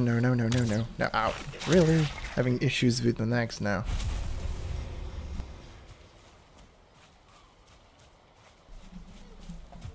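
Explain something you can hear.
Footsteps patter quickly through grass.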